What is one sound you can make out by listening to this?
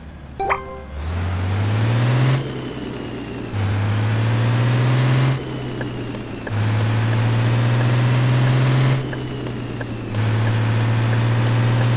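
A bus engine revs up, rising in pitch again and again as it shifts gears.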